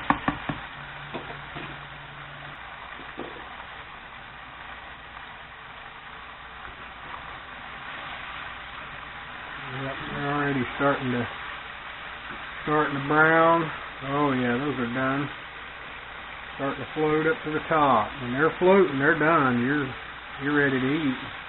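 Oil sizzles and bubbles steadily in a pot.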